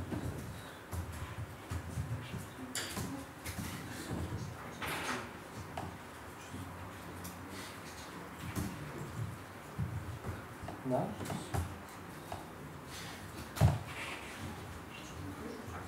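Laptop keys click as someone types.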